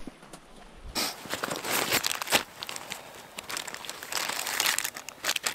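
Nylon fabric rustles as hands handle a stuff sack.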